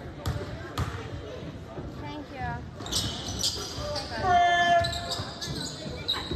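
Young players and spectators call out in the background.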